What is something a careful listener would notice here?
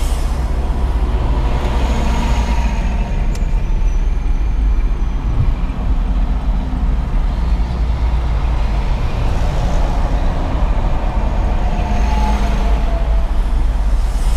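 A bus roars past close by.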